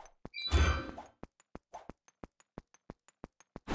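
Video game footsteps tap quickly and evenly.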